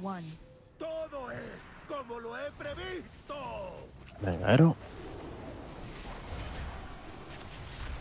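Fighting sounds and spell effects clash and crackle.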